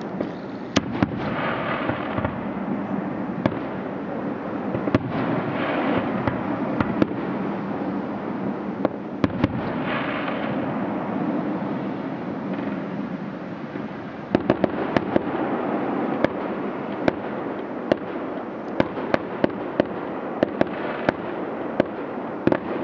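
Fireworks crackle and fizz as sparks fall.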